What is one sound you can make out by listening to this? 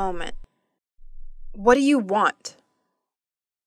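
A girl asks a question in an annoyed voice.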